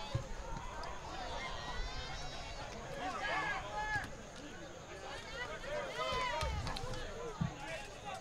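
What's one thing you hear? Young women players shout to each other from a distance.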